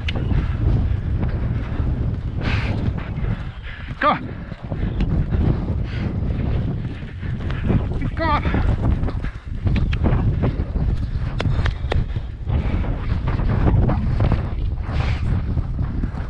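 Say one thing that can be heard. A horse's hooves thud rhythmically on a dirt track.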